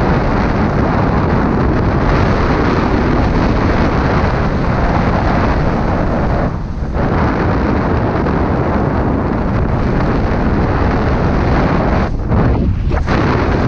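Skis hiss and scrape steadily over snow.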